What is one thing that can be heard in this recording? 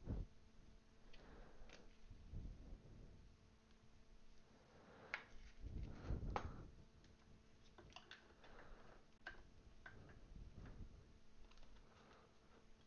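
Plastic card cases click and tap as they are handled.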